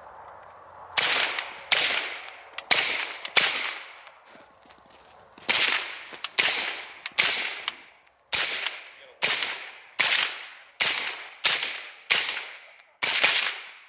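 A rifle fires rapid loud shots in quick succession, ringing out across open ground.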